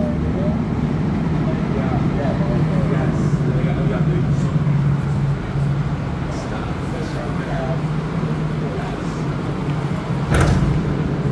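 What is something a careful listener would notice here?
A subway train rumbles along with a steady whine.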